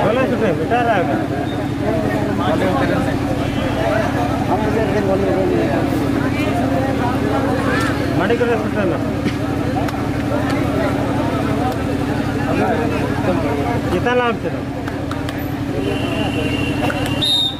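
A large outdoor crowd chatters and calls out loudly.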